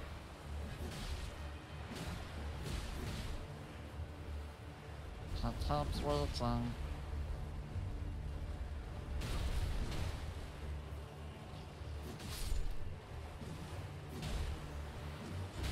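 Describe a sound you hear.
Metal blades clash and strike.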